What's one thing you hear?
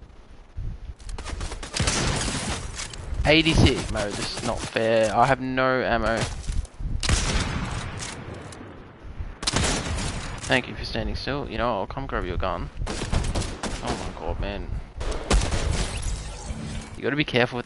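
Rifle shots crack from a video game.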